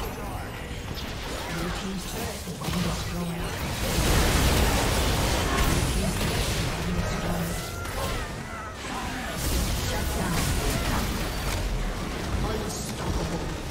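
Game spell effects crackle, whoosh and clash in a busy fight.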